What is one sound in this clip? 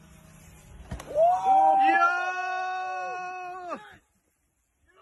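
A man shouts with excitement close by.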